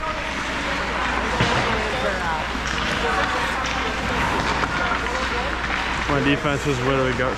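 Young players chatter and call out nearby.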